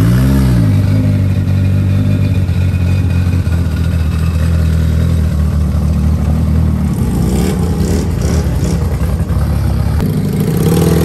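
A car engine rumbles loudly with a deep, throbbing idle.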